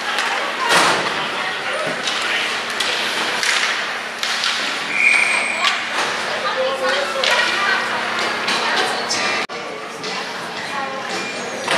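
Ice skates scrape and carve on ice in an echoing arena.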